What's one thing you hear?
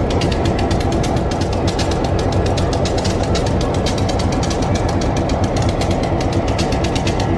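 A streetcar rumbles and rattles along the rails close by.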